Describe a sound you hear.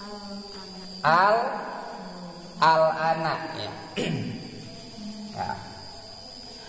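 A young man chants melodically into a microphone, heard through a loudspeaker in an echoing room.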